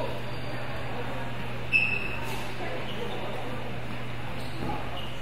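Distant children's voices murmur and echo in a large hall.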